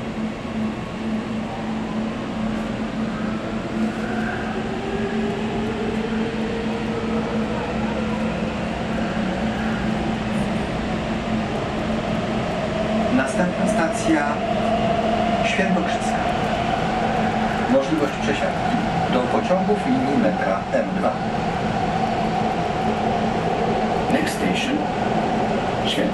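A metro train hums and rumbles as it moves, with a rising whine.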